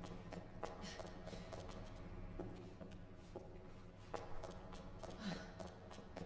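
Footsteps thud slowly and steadily on a hard floor.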